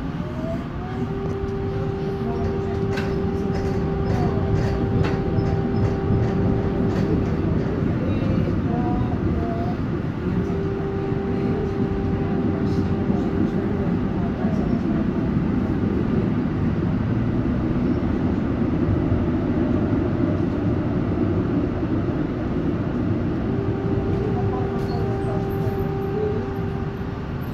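A tram rumbles steadily along its tracks, heard from inside.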